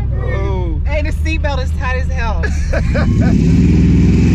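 A woman laughs excitedly close by.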